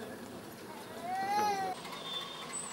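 A small steam locomotive whistle sounds a short rising and falling blast.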